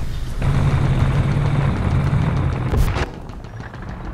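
A tank engine rumbles steadily at idle.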